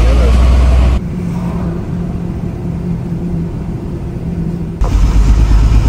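Tyres hum on a highway.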